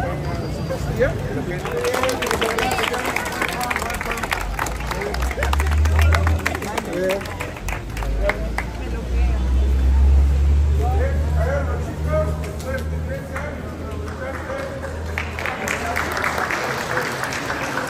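A crowd of young people chatter and cheer nearby.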